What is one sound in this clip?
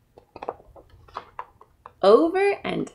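Book pages rustle as a book is handled.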